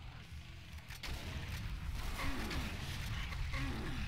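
A fireball bursts with a loud whoosh.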